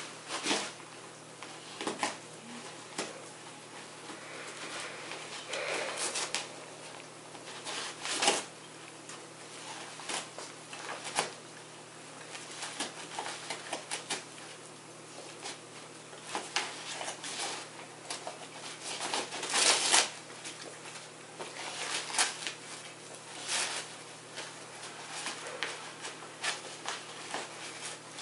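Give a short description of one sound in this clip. A dog tears and crinkles paper, in rustling bursts.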